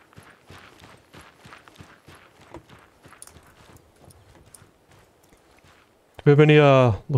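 Footsteps crunch steadily on dry soil.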